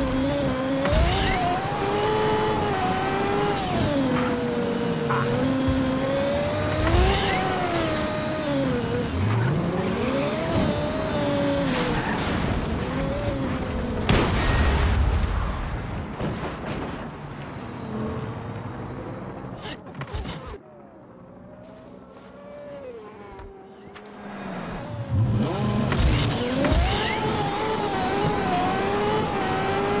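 A racing car engine whines loudly, rising and falling in pitch as it speeds up and slows down.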